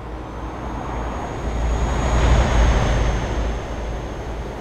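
Another truck roars past close by.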